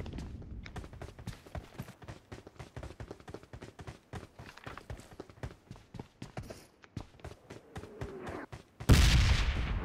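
Quick footsteps patter across a hard floor.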